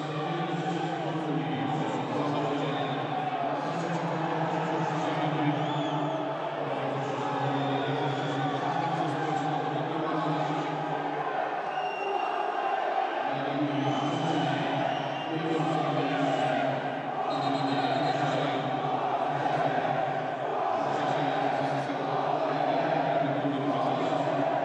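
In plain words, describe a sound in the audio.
Men argue and shout across a football pitch.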